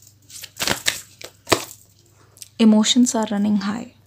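A card slaps softly on a table.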